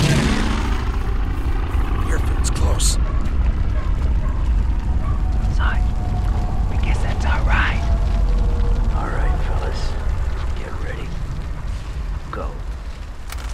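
A deep rumble of distant explosions roars steadily, then slowly fades.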